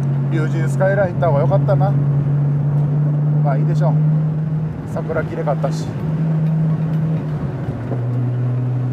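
A car engine's pitch drops briefly as gears shift.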